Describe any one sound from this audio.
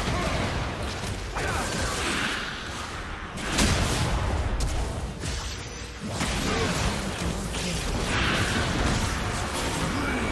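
Magic blasts and hits crash loudly in a fast video game battle.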